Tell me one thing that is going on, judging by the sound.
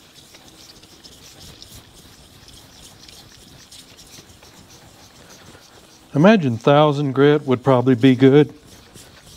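A hand rubs a paper towel over a wet flat surface.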